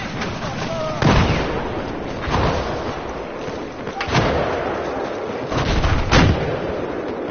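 Explosions boom heavily nearby.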